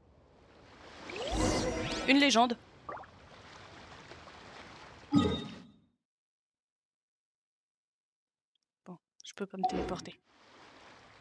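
Soft game chimes and sound effects play.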